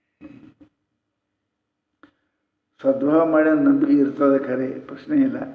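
An elderly man speaks calmly and expressively into a microphone.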